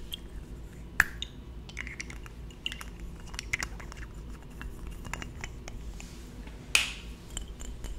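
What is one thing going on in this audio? A metal bottle cap clicks and scrapes close to a microphone.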